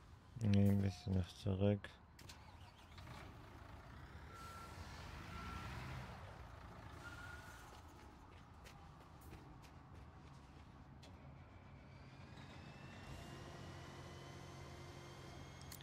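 A heavy diesel truck engine rumbles steadily.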